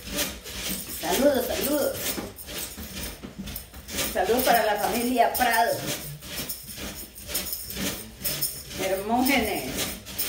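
A woman speaks in short bursts, close by.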